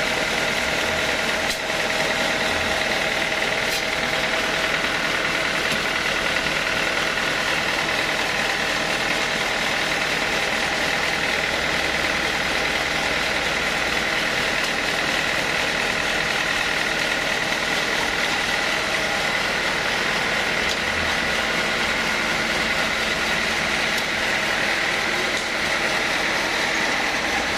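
A band saw runs with a steady, loud whine and rattle.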